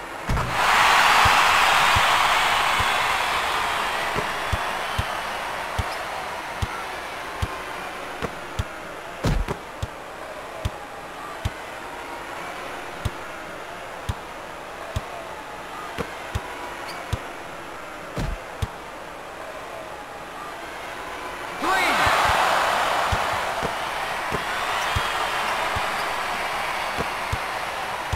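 A large crowd cheers loudly, then fades.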